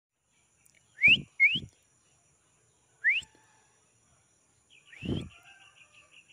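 A small dog barks in short, sharp yelps.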